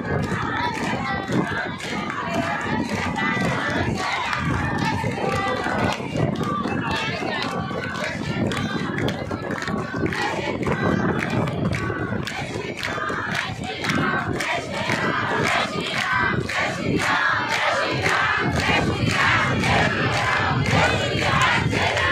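A large outdoor crowd of men and women cheers and chants loudly.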